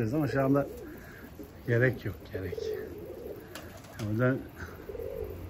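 Pigeons coo in short bursts nearby.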